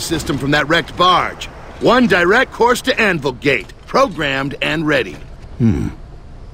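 A man speaks loudly and with animation, close by.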